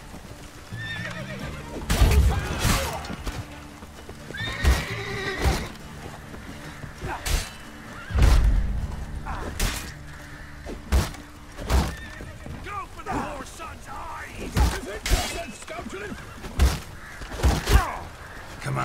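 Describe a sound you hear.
Men grunt and shout as they fight.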